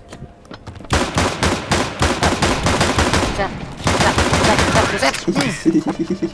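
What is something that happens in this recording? Pistols fire rapid gunshots in quick bursts.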